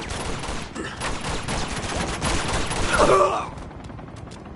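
Pistol shots crack in rapid bursts.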